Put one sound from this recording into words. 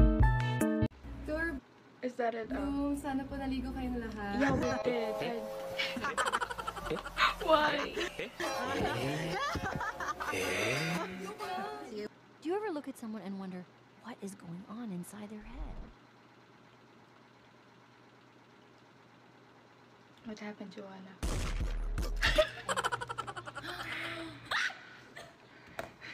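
A young woman talks and laughs close to a microphone.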